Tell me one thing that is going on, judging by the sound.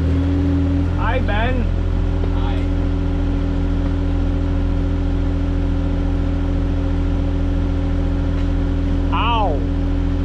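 A young man speaks briefly.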